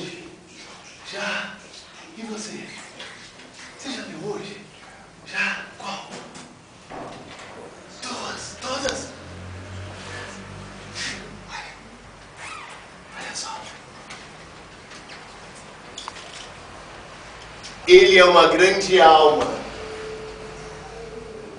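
Men and women talk quietly nearby in a room.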